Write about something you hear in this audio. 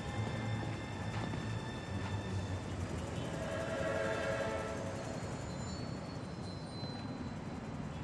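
Footsteps land on a rooftop.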